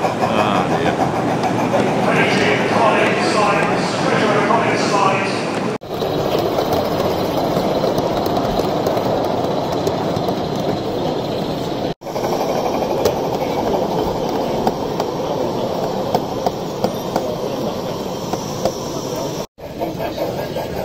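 A model train clicks and rattles along its track.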